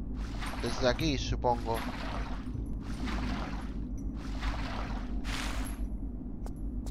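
Water splashes and sloshes.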